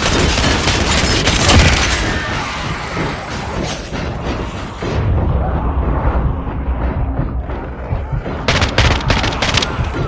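Zombies snarl and growl nearby.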